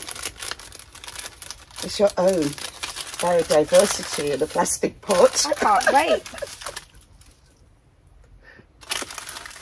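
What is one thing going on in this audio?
A paper seed packet rustles in hands.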